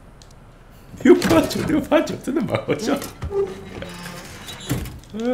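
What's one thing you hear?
A heavy metal safe door unlatches and swings open with loud clanks.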